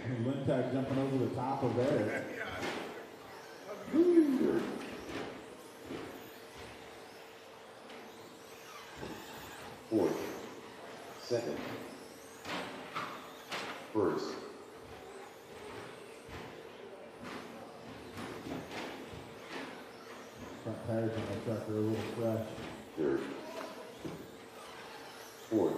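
Small electric race cars whine and buzz as they speed around an echoing indoor track.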